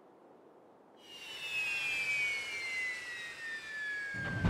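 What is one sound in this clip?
A falling whine sweeps down as a craft descends and lands.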